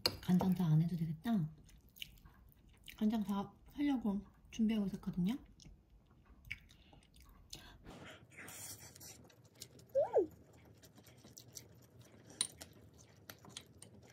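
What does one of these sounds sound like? A metal spoon scrapes and clinks against a ceramic bowl.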